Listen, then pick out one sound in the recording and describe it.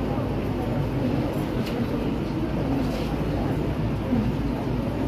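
A woman speaks steadily into a microphone, heard through loudspeakers in an echoing hall.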